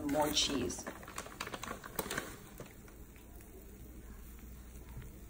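Food sizzles softly in a hot pan.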